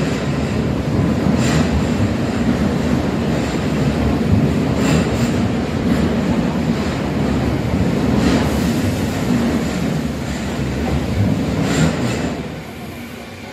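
Train wheels clatter and click over the rail joints as the cars pass close by.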